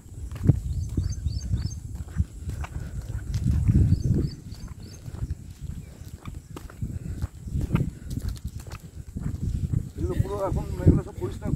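Shoes scuff and tap on concrete.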